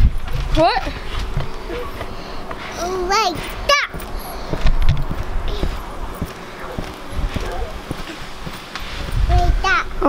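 A trampoline mat thumps and creaks under bouncing feet.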